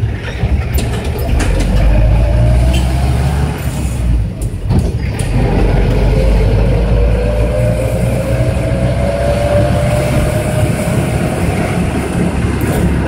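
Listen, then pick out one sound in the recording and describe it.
A minibus engine whines higher as the vehicle speeds up.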